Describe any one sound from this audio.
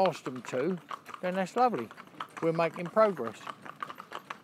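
A woman calls out to the horses nearby.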